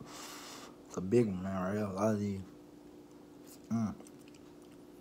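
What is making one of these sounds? A man hums and makes pleased sounds close by.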